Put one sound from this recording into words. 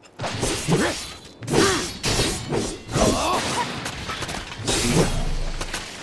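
A heavy sword swings and strikes with sharp whooshing hits.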